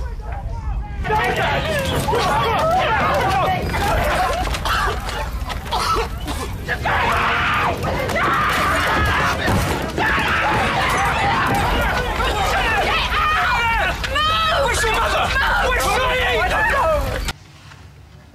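People shout and scream in panic.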